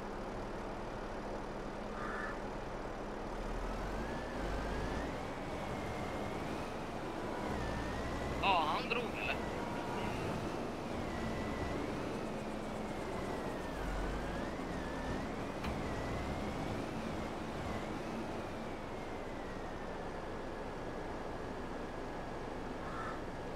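A heavy diesel engine rumbles steadily, its pitch rising and falling as it revs.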